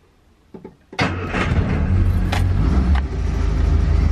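A car engine cranks and roars to life.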